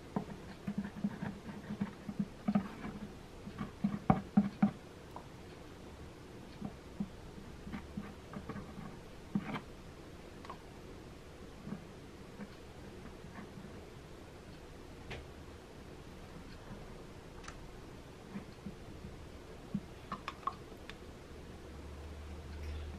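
A small plastic tool scrapes and taps on a hard surface.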